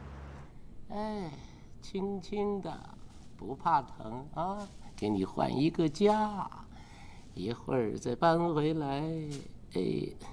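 An elderly man speaks softly and gently, close by.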